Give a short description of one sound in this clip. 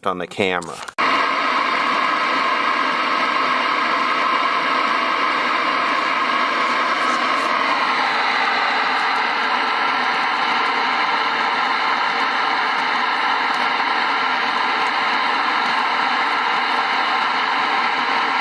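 An old television hums with a steady, loud buzz.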